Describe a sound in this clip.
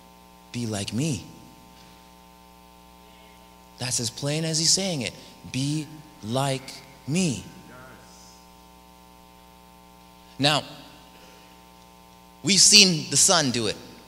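A young man speaks with animation through a microphone, with pauses, echoing in a large hall.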